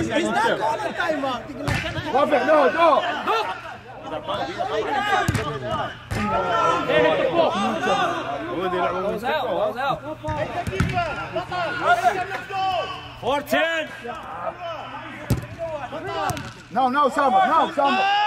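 Men talk and shout with animation nearby and across an open pitch.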